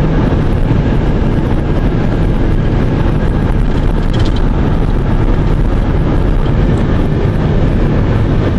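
Wind rushes loudly past a moving car.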